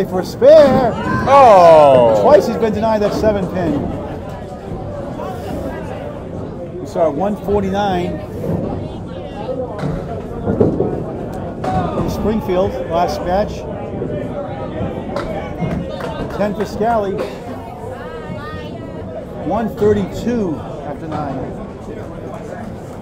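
Men talk and cheer in a noisy, echoing hall.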